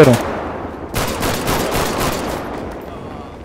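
Pistol shots crack in quick succession.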